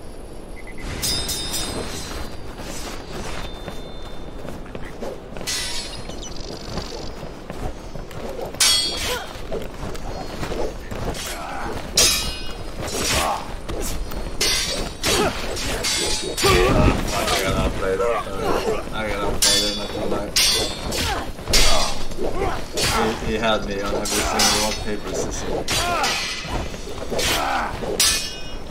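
Swords clash and clang in quick sword fights.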